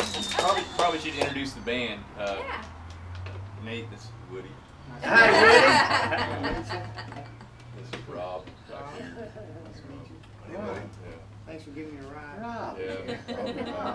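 Men talk casually and laugh close by.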